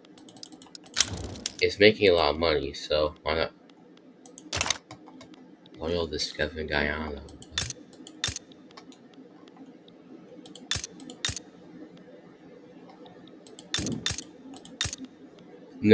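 Short sharp interface clicks sound now and then.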